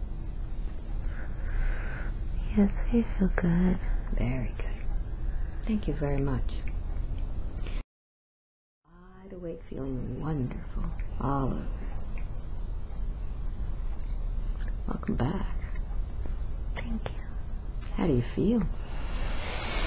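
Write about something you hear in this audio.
A woman speaks softly and weakly, close by.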